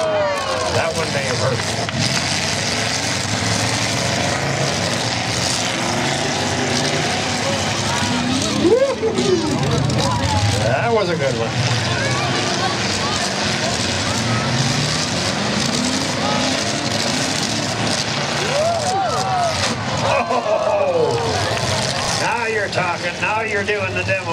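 Truck engines roar and rev loudly outdoors.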